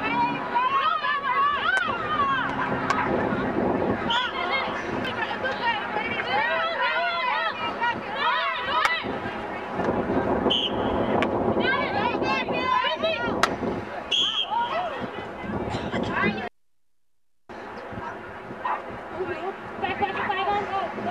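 Young women call out and shout to each other outdoors.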